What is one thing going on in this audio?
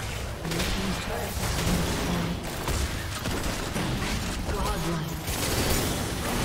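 Fantasy spells whoosh and blast in quick bursts during a fight.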